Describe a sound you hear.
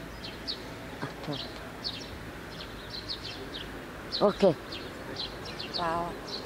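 An elderly man speaks in short phrases close to a microphone, outdoors.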